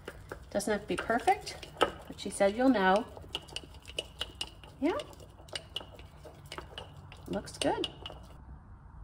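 A wooden stick stirs and scrapes inside a glass jar.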